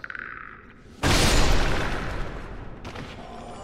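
Wooden crates smash and clatter.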